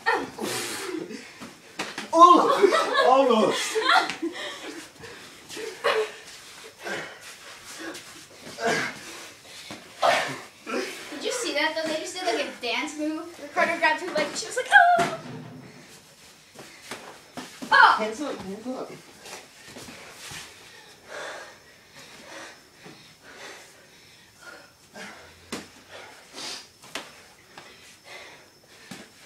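Bare feet scuff and thump on a concrete floor.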